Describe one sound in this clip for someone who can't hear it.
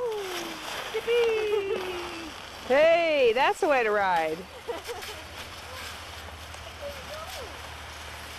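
A sled scrapes over crunching snow.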